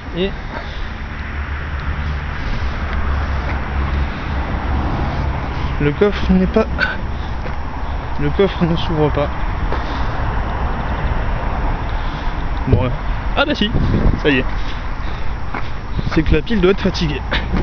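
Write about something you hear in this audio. A man talks close by in short bursts.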